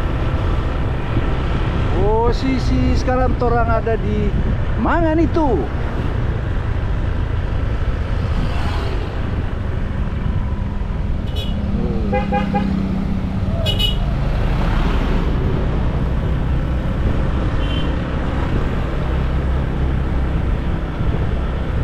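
Wind rushes past in a low, steady roar.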